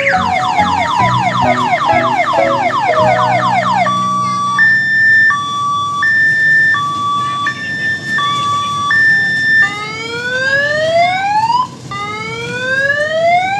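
A ride-on toy train plays loud electronic siren sounds through a loudspeaker.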